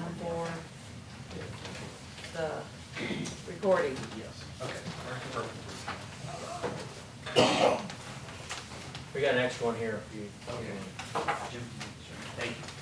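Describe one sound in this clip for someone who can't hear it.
Several men talk quietly among themselves.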